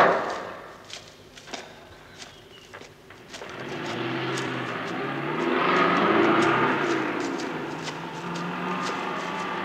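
Footsteps crunch softly on gravel.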